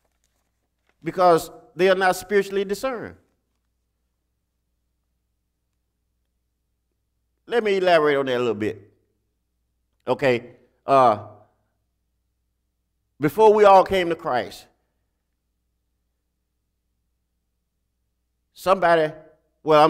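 A man speaks into a microphone in short bursts, with long pauses between, in an echoing hall.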